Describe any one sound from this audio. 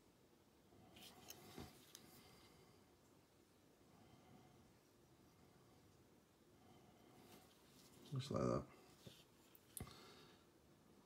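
A plastic model knocks and clicks softly as it is turned in the hand.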